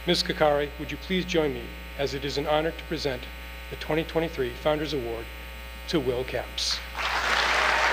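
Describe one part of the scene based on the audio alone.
A man speaks into a microphone over a loudspeaker in a large hall.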